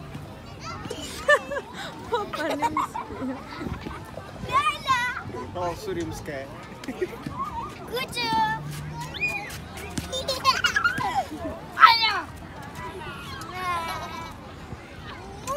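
Young children shriek and laugh excitedly nearby.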